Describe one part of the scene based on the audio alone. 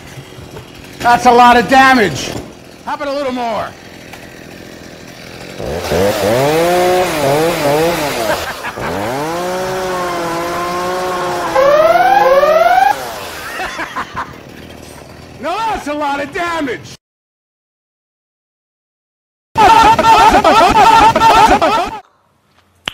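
A middle-aged man laughs loudly and gleefully.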